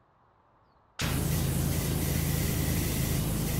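A pressure washer sprays water in a steady, loud hiss.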